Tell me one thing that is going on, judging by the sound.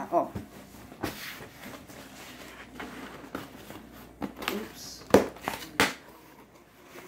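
Cardboard rustles and thumps as a box is handled.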